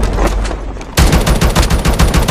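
A marksman rifle fires shots in a video game.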